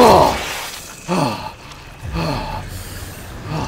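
Wet flesh squelches as a body is searched.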